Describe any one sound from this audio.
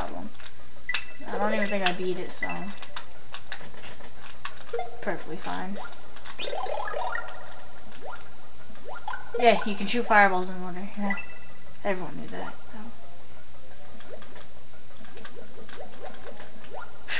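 Short chiming electronic game sounds play from a television speaker now and then.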